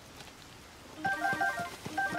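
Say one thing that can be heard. A bright chime rings as an item is picked up.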